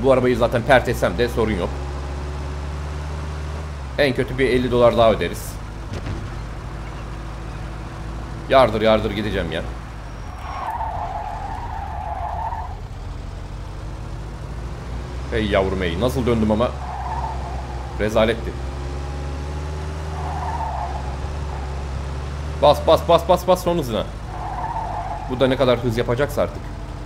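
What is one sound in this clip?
A car engine hums steadily as it drives.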